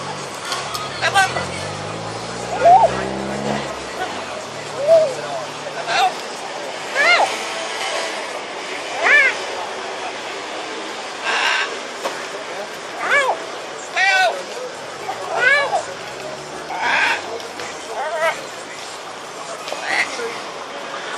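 A parrot squawks and whistles repeatedly nearby.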